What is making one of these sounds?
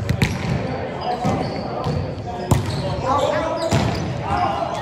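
A volleyball is struck with sharp slaps in a large echoing gym.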